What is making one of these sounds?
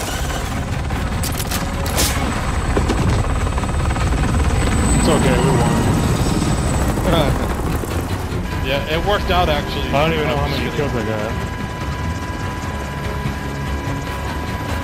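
A helicopter's rotor thumps and roars overhead.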